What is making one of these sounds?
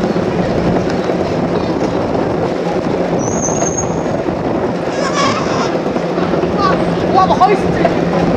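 Street traffic rumbles all around.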